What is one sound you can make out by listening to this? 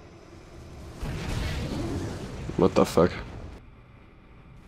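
A beam of energy blasts past with a loud rushing roar.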